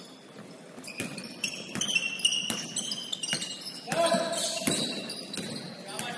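A basketball bounces on a hard floor with echoing thuds.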